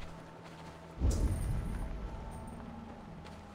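A deep magical whoosh bursts out.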